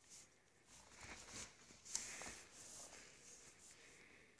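Gravel crunches softly as it is dug away.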